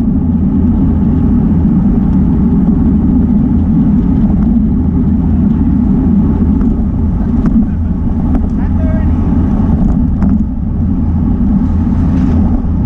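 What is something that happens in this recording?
Wind rushes loudly past, as if heard while riding fast outdoors.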